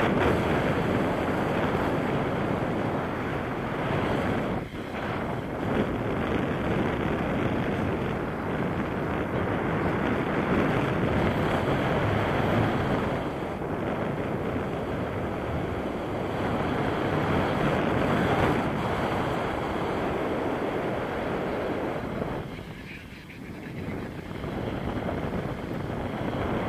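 Strong wind rushes and buffets past a microphone outdoors.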